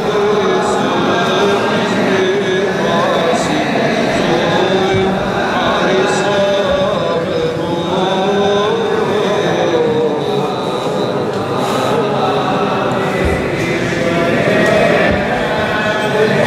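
Men chant together in a slow, drawn-out melody, echoing through a large stone hall.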